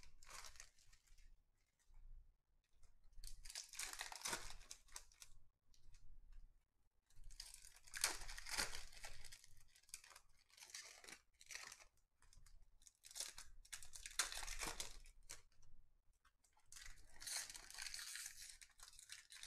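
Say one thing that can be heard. Foil card wrappers crinkle and tear open in bursts.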